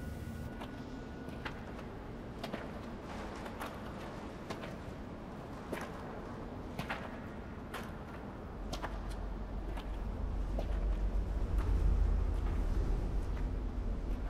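Footsteps crunch over rubble in a large echoing hall.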